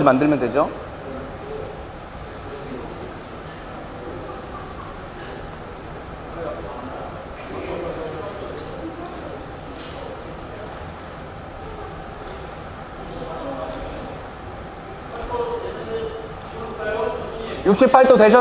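People murmur quietly in a room.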